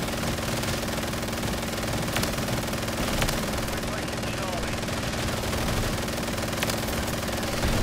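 A minigun fires in a rapid, steady roar.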